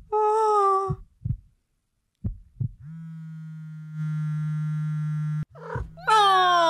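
A young woman coos and squeals with delight into a microphone, close by.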